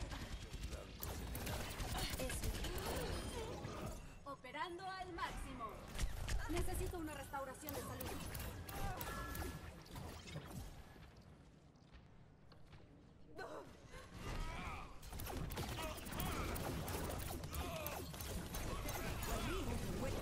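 A video game's energy weapon fires in bursts.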